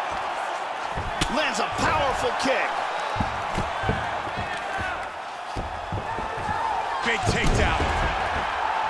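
Punches and kicks land with dull thuds on bodies.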